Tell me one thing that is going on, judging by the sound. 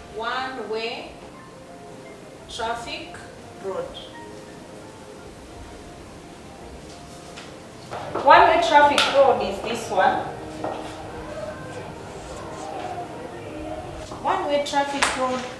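A woman speaks clearly and calmly, like a teacher explaining.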